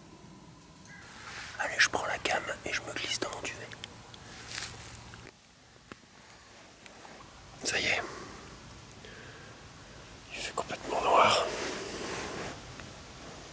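A man speaks quietly, close to the microphone.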